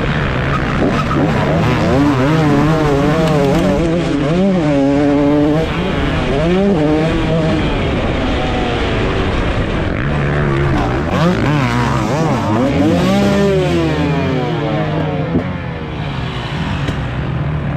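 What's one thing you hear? A dirt bike engine revs and roars up and down close by.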